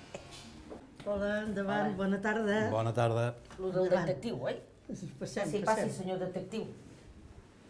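Elderly women greet a visitor with animation, close by.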